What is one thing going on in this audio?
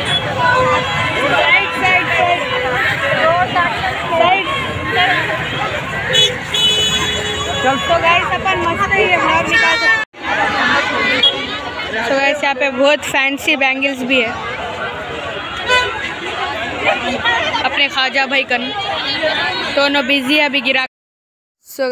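A crowd chatters.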